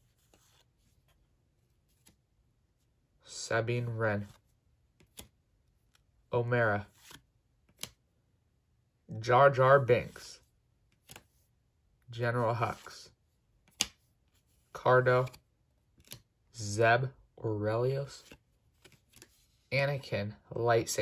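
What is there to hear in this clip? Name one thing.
Trading cards slide and flick against each other in a pair of hands.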